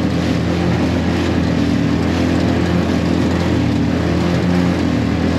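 Water splashes and rushes against a moving boat's hull.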